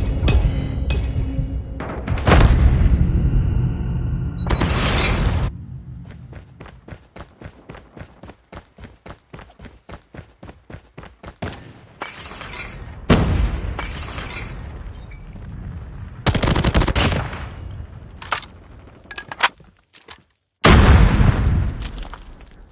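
Rapid gunfire blasts loudly in bursts.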